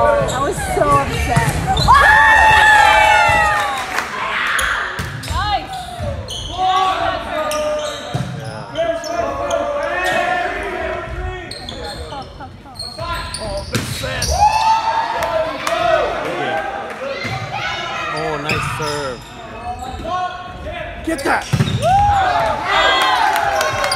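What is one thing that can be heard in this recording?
A volleyball is hit with sharp slaps.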